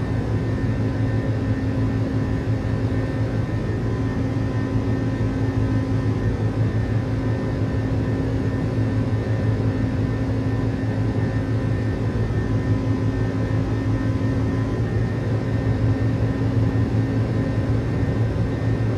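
A jet engine drones steadily from inside an aircraft cabin, with a low rumbling roar and a constant hum.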